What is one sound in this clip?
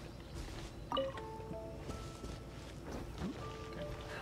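A short game chime sounds as an item is picked up.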